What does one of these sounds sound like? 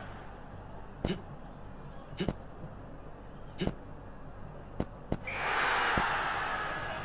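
A ball is struck with sharp thumps, back and forth.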